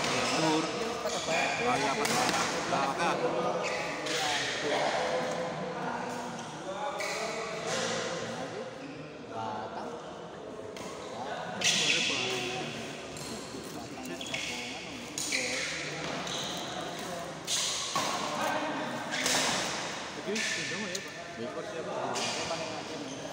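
A crowd of young men and women chatter in the background.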